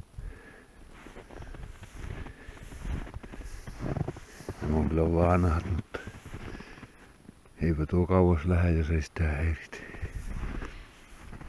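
Skis swish and crunch over deep snow.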